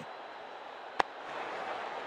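A bat strikes a ball with a sharp crack.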